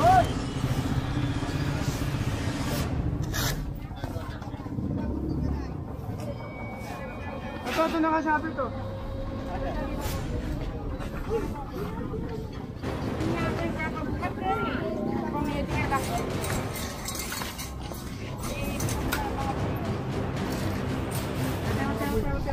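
Men talk with animation nearby, outdoors among a crowd.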